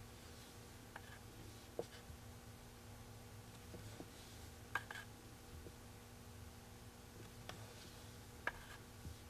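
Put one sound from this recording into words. A dotting tool taps softly on a painted wooden board.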